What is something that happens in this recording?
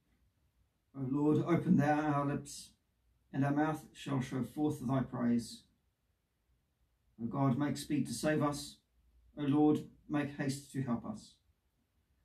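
A man speaks calmly and slowly nearby.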